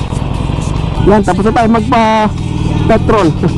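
A motorcycle engine revs up and pulls away.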